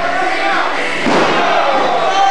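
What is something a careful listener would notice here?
A body slams heavily onto a mat with a loud thud.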